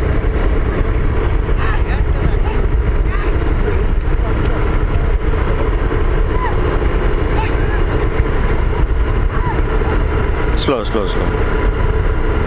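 Hooves clatter on a paved road as a team of bullocks gallops.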